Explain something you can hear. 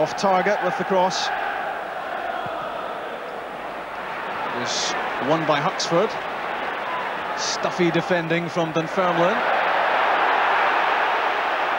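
A large stadium crowd roars steadily, swelling louder near the end.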